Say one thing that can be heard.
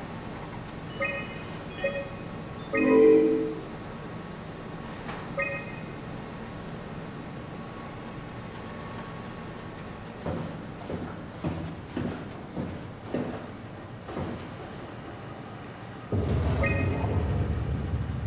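Short electronic beeps sound as menu options are selected.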